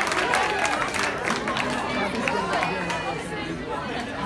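An audience cheers and claps.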